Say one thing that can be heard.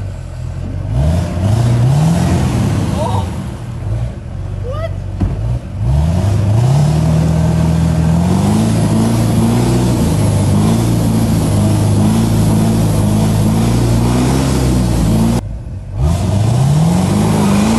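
A pickup truck engine revs hard while the truck is stuck in mud.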